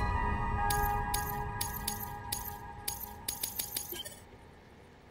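Quick electronic ticks sound in a rapid series.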